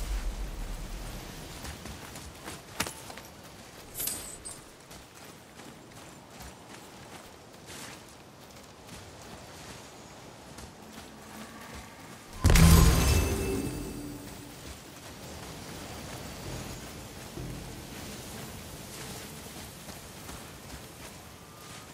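Heavy footsteps crunch on rocky ground.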